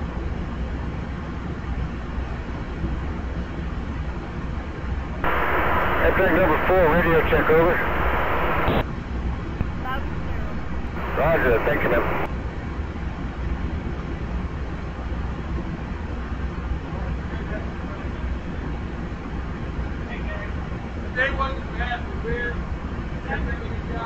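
A train engine idles with a steady low hum.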